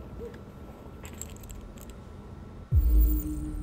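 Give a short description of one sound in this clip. Pills rattle inside a plastic bottle as it is picked up.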